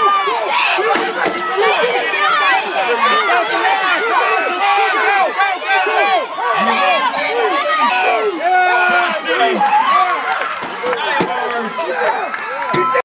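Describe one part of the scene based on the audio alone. A crowd of spectators cheers and shouts nearby outdoors.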